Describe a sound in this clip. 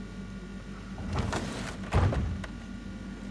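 A heavy wooden door rumbles open.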